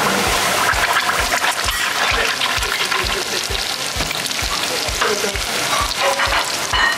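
Hot oil sizzles and crackles loudly in a pan.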